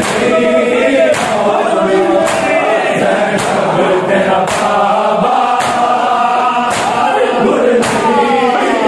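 A crowd of men chants together loudly in a chorus.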